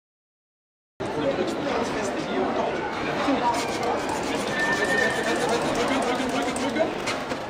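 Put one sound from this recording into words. People chatter nearby in a busy room.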